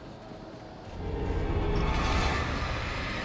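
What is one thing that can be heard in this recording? A burst of light flares with a loud whoosh.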